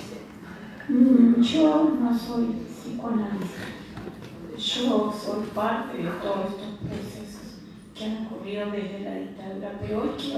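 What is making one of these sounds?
An elderly woman speaks steadily into a microphone, heard through a loudspeaker in a room with some echo.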